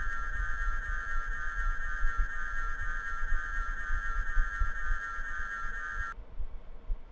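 A small boat's engine chugs steadily across the water.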